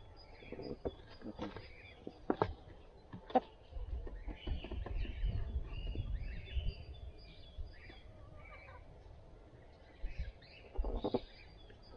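A hen clucks softly close by.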